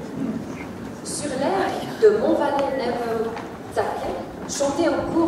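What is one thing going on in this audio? A woman speaks over a loudspeaker.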